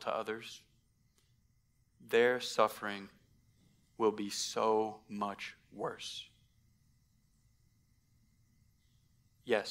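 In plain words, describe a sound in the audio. A man speaks with emphasis through a microphone, in short bursts with pauses.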